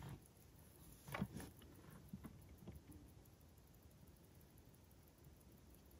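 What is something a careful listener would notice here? Fingers handle a metal wristwatch with faint clicks.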